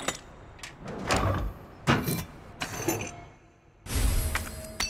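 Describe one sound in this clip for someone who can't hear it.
A heavy mechanism clunks open.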